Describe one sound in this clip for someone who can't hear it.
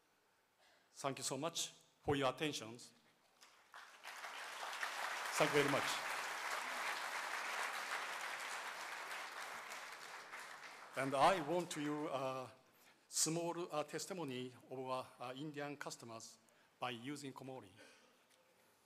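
A man speaks calmly into a microphone in a large hall.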